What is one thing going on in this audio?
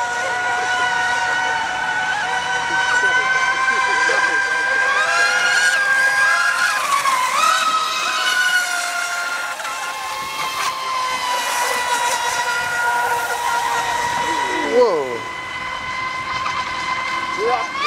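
A model boat's motor whines high and steady, rising and falling in pitch as the boat races across the water.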